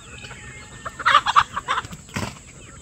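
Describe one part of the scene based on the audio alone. A chicken flaps its wings noisily close by.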